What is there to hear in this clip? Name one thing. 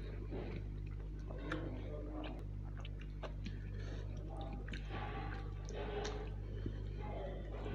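Fingers squelch and mix rice with curry sauce.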